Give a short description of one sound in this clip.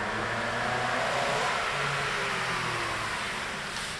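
A car engine hums as a car rolls slowly through an echoing garage.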